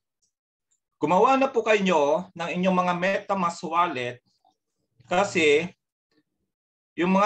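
A man talks calmly and steadily, close to a microphone.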